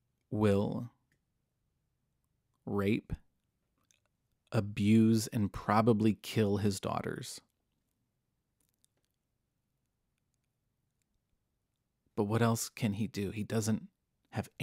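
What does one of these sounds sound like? A man speaks calmly and closely into a microphone, with pauses.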